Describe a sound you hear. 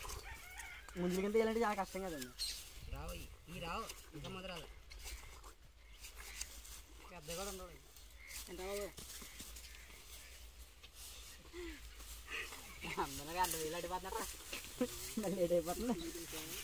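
Young men talk casually nearby outdoors.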